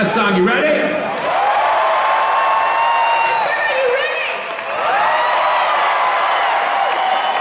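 A large crowd cheers and whistles in a big echoing hall.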